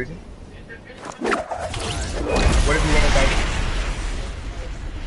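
A glider snaps open with a loud rushing whoosh of wind.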